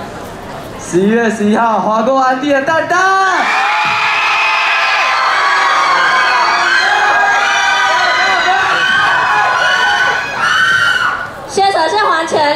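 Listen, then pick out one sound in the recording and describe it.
Young people sing together loudly through loudspeakers.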